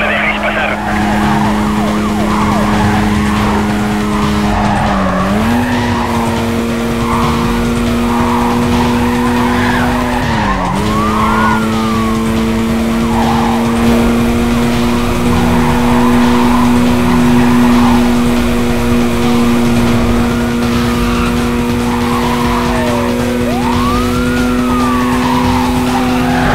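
A car engine roars at high speed, dipping briefly with gear shifts.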